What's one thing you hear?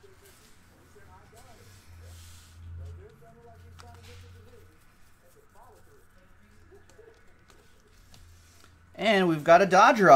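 Trading cards shuffle and slide between hands.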